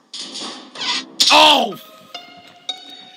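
A loud alarm blares in a video game.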